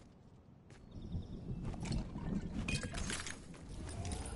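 A treasure chest hums and chimes as it opens.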